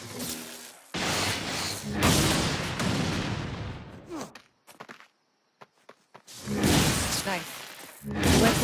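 An electric blast crackles and bursts with a loud boom.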